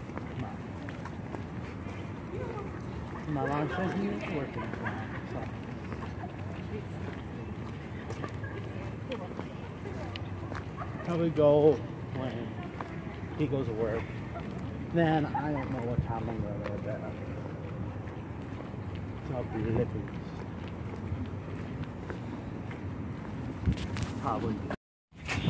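Footsteps tap on a concrete path.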